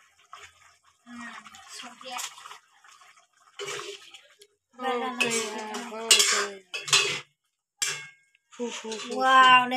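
A metal spatula scrapes and stirs in a wok.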